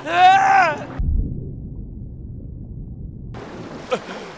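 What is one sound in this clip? Water rumbles, heard muffled from underwater.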